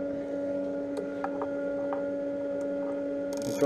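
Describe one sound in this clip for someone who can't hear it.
A metal caliper clicks lightly against a metal workpiece.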